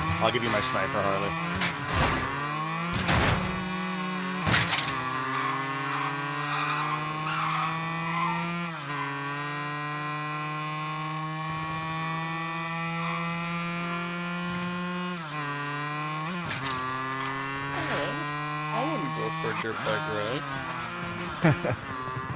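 A motorbike engine hums steadily, revving up and down as gears change.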